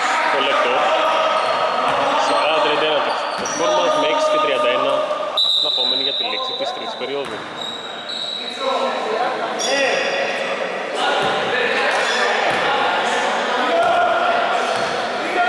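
Young men shout to each other in a large echoing hall.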